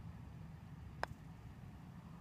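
A putter taps a golf ball with a light click.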